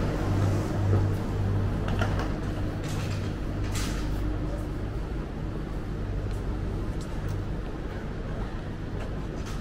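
Suitcase wheels roll over a hard floor.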